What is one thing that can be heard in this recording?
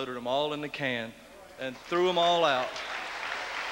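A man speaks slowly into a microphone.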